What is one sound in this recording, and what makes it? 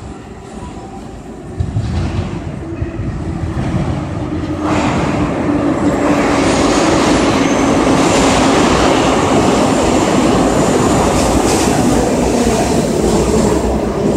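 A subway train rumbles into the station, growing louder as it approaches.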